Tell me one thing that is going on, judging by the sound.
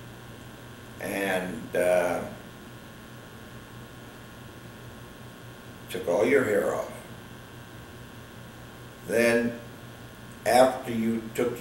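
An elderly man speaks calmly and slowly, close by, with long pauses.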